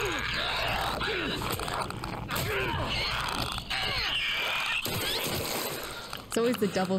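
A monster shrieks and gurgles.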